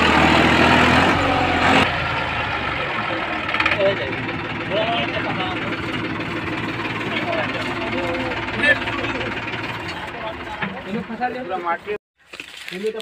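Tractor tyres churn through deep mud.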